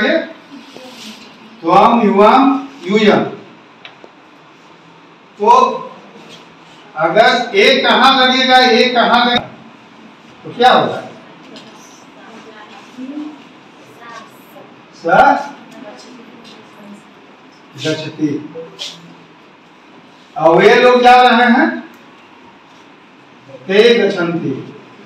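A man speaks in short bursts with pauses, close by in a room.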